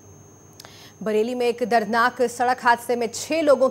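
A young woman reads out the news calmly into a microphone.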